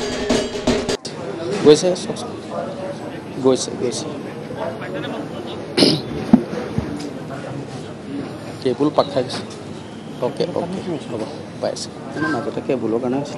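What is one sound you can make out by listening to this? An elderly man chants prayers nearby.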